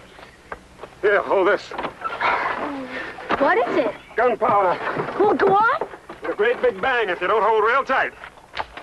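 Children shout excitedly nearby.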